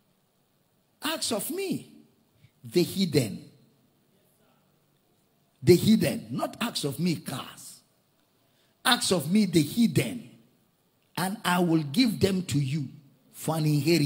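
A middle-aged man preaches forcefully into a microphone, in bursts with pauses.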